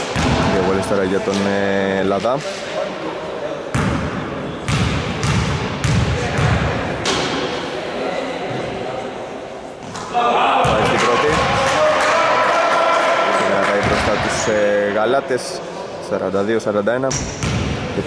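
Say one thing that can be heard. Men call out and talk in a large echoing hall.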